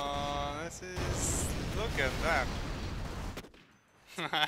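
Explosions boom and crackle in a loud battle.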